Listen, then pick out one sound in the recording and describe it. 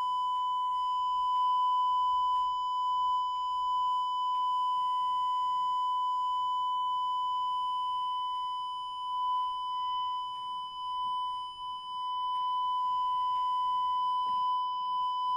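A steady high-pitched tone hums from a loudspeaker.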